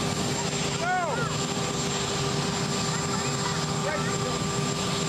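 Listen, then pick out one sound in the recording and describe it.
A helicopter engine whines steadily nearby.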